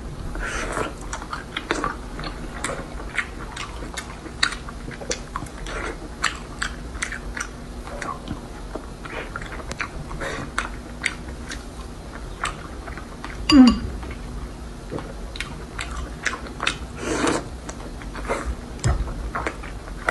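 A young woman chews food with wet smacking sounds close to a microphone.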